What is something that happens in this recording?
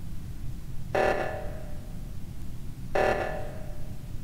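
An electronic alarm blares in short bursts.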